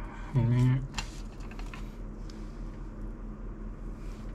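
A plastic dish clicks as it is handled.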